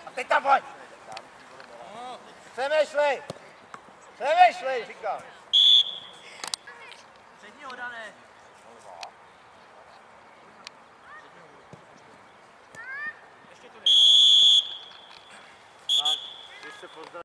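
Young players shout loudly.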